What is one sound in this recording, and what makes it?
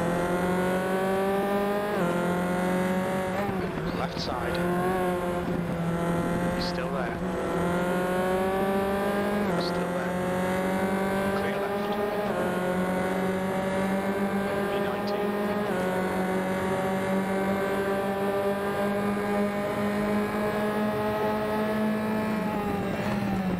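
A racing car engine whines loudly, climbing in pitch and dropping sharply at each gear change.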